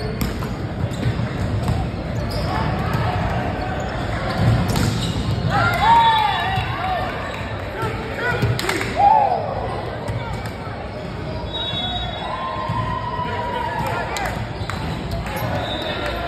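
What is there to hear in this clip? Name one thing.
Young men and women call out and chatter around a court.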